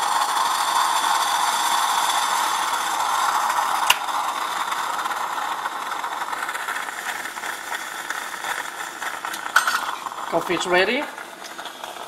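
A stovetop coffee pot hisses and gurgles as it boils.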